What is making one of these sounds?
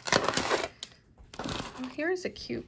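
Small beads clink and rattle as they are handled.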